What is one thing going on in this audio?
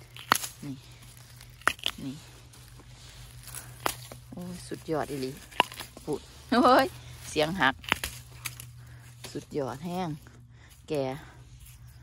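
Dry plant stalks rustle and creak as a hand grips them.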